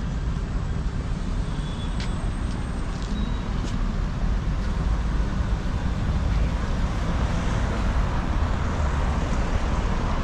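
Cars drive past on a street outdoors.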